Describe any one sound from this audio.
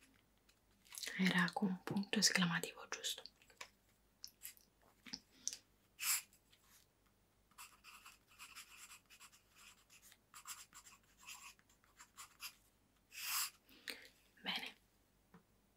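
A young woman speaks briefly and calmly, close to the microphone.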